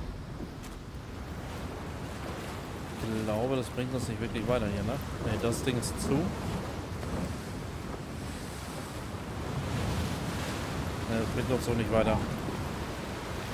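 A steady wind blows.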